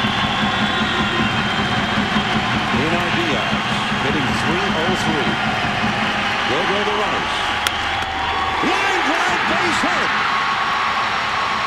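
A large crowd murmurs and cheers in a big open stadium.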